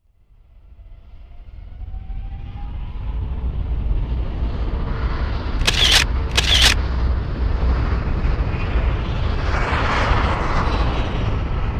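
Flames roar and whoosh.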